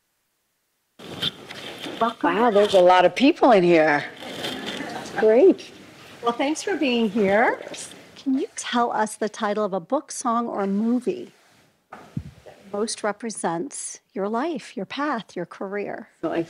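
A woman speaks with animation through a microphone in a large room.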